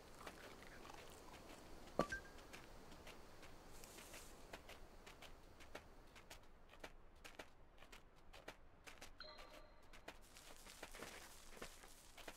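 A fox's paws patter softly through grass and undergrowth.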